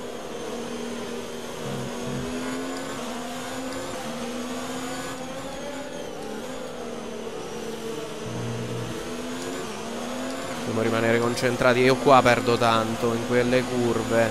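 A racing car engine whines steadily, rising and dropping in pitch with each gear change.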